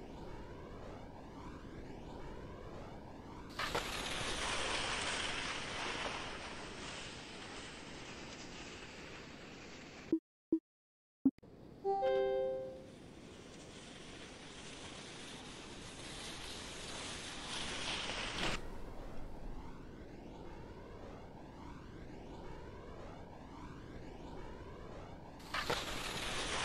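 Wind rushes steadily past a ski jumper in flight.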